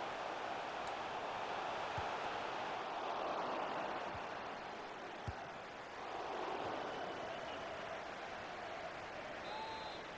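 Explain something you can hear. A stadium crowd roars steadily throughout.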